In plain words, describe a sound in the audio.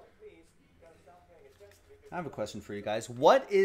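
Trading cards rustle as they are handled.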